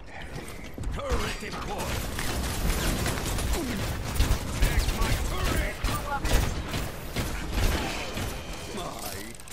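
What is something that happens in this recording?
A weapon fires rapid explosive shots.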